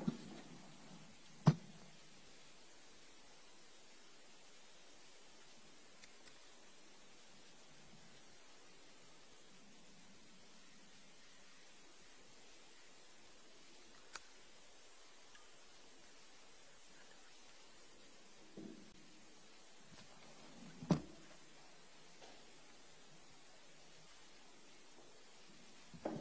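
A man speaks calmly through a microphone in a low voice.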